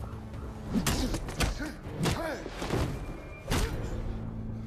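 Heavy blows and thuds land in a scuffle.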